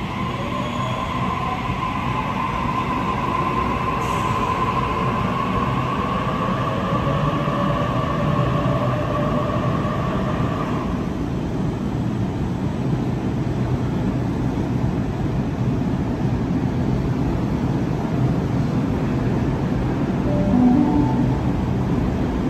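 A train rumbles and clatters past at speed, echoing in an enclosed space.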